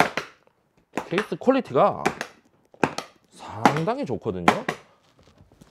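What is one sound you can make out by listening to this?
Latches on a plastic case snap open with sharp clicks.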